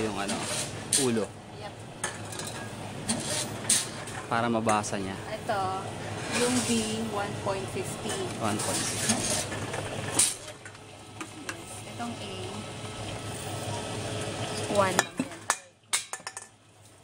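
Cans clatter as they are fed into a recycling machine.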